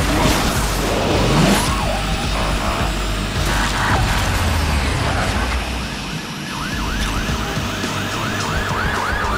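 A nitro boost whooshes loudly.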